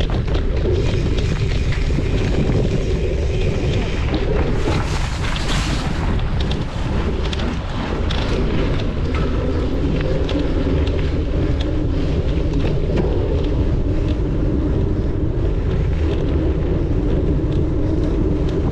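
Wind rumbles loudly across a microphone.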